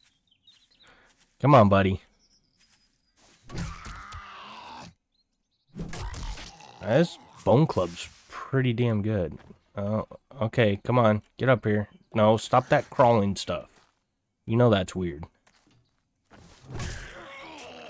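A bone club thuds against a zombie's body.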